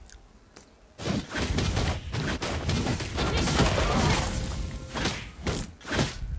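Fast video game battle effects clash, zap and crackle loudly.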